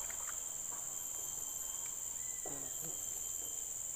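A fish splashes in shallow water.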